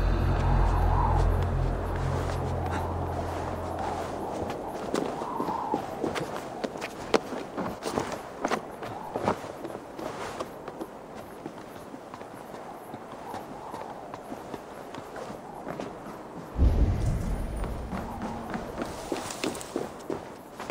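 Hands and feet scrape and knock against rock and wooden rungs while climbing.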